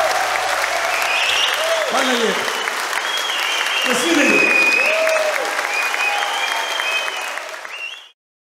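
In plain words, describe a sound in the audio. A large crowd cheers loudly in a big echoing hall.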